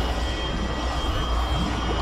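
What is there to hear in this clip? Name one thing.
A burst of flame whooshes.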